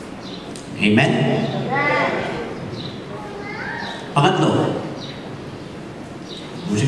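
A middle-aged man speaks calmly into a microphone, his voice carried over loudspeakers in an echoing hall.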